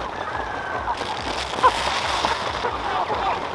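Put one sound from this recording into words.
Grain pours out of a sack onto the ground with a rushing hiss.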